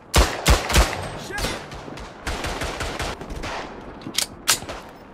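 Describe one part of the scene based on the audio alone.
Pistol shots crack loudly, one after another, in quick bursts.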